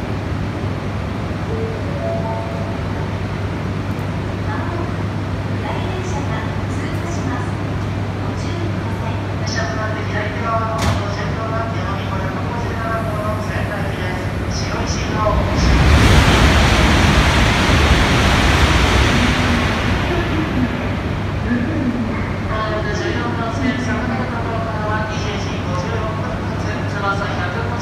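A train hums steadily at a platform.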